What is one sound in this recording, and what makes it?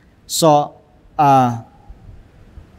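An elderly man reads aloud slowly through a microphone.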